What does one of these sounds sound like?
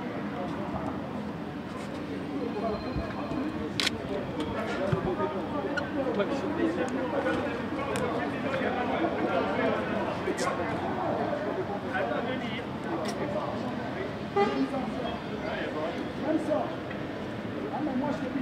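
A crowd of men talk over one another nearby.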